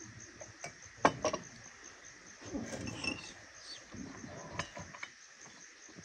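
Cutlery clinks on a plate.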